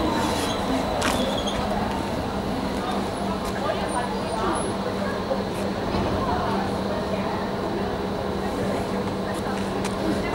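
A stopped train hums steadily.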